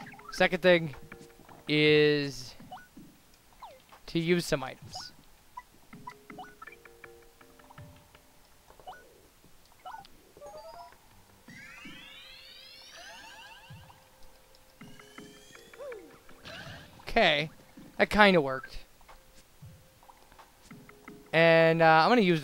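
Short electronic menu chimes blip as selections change.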